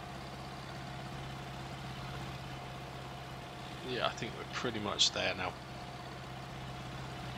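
A tractor engine hums steadily at low idle.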